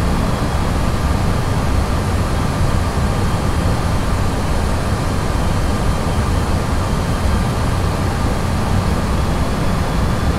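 Jet engines roar steadily from inside an aircraft.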